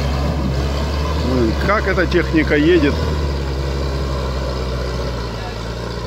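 Tyres squelch through wet mud.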